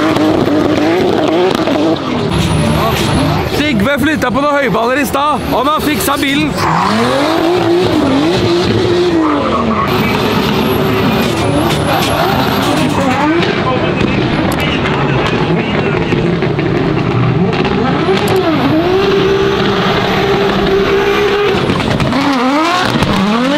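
A car engine revs hard, its pitch rising and falling again and again.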